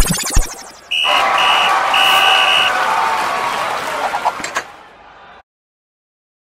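A bright, cheerful tune plays with ringing chimes.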